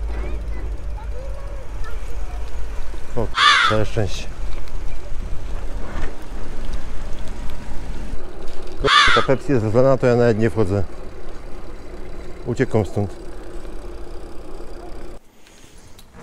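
Bicycle tyres roll over a dirt path and paving stones.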